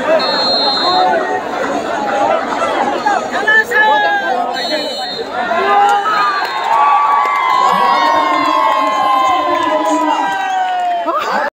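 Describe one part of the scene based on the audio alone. A crowd of men cheers and shouts loudly outdoors.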